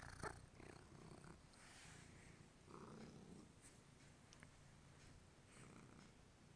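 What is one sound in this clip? A hand strokes a cat's fur with a soft rustle.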